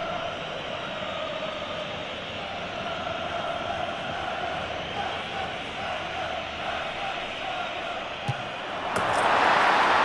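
A large stadium crowd chants steadily.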